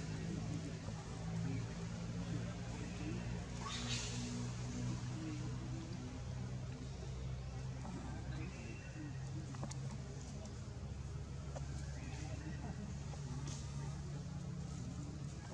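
Leaves and branches rustle as monkeys shift about in a tree.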